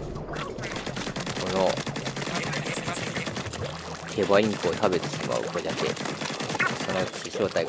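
Paint sprays and splatters with wet squelching bursts.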